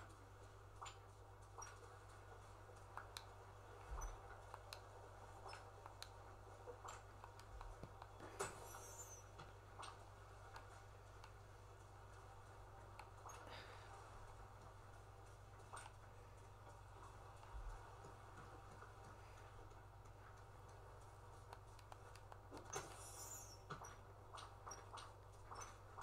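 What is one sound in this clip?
Video game sound effects play softly from a television speaker.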